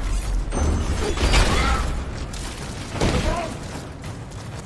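A magic blast whooshes and bursts.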